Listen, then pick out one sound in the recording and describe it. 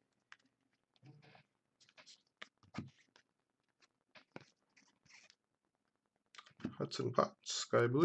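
Trading cards flick and slide against each other.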